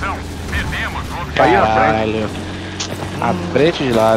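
A tank engine rumbles low and steady nearby.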